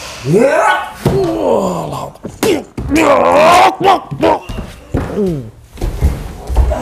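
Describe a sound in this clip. Bodies thud onto a hard floor.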